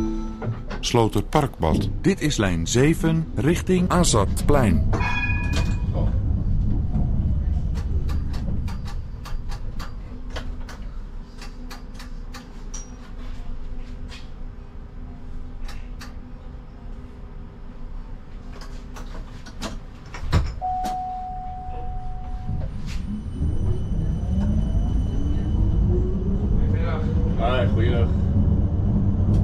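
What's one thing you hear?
A tram rumbles along the rails.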